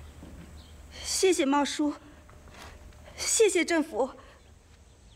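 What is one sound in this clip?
A woman speaks with gratitude through tears.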